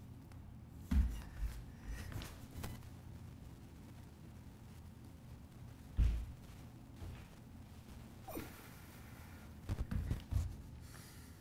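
Feet thump softly on a mat.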